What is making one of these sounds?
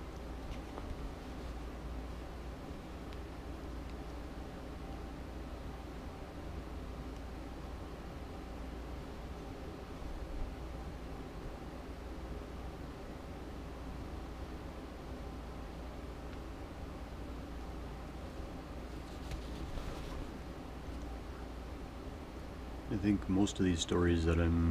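Fabric rustles softly as it is handled.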